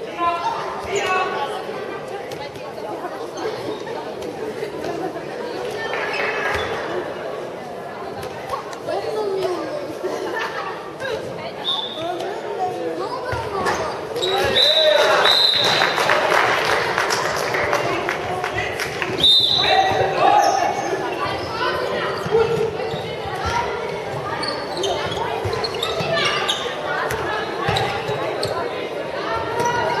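A handball bounces on the floor.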